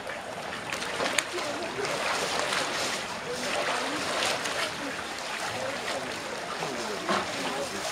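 A man splashes while swimming in a pool.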